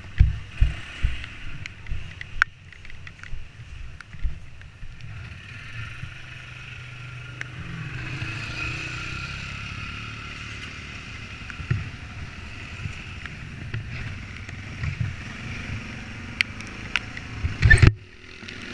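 Tyres bump and rattle over a rough dirt track.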